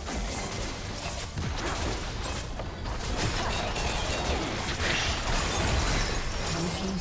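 Spells and attacks clash and burst in a busy game battle.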